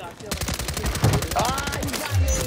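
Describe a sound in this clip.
A sniper rifle fires a single loud shot.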